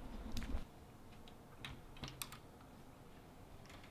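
A doorknob rattles and clicks as it turns.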